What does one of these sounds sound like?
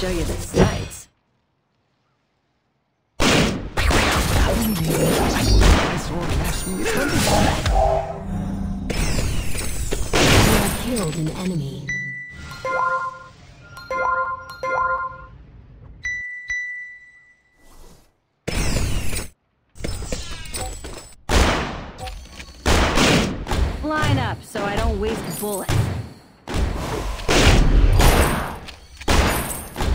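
Fantasy battle sound effects whoosh, clash and boom.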